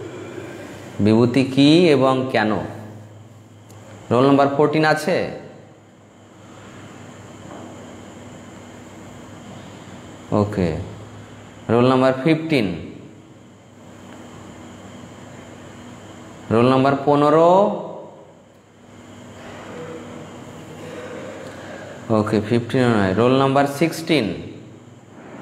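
A man sings slow chanting phrases close to a microphone, with pauses between them.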